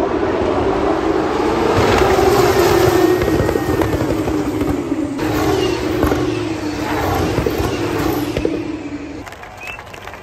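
Racing cars roar past at high speed with whining engines.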